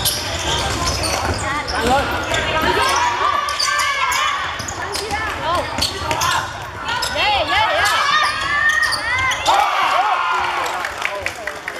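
Young boys shout to each other across the hall.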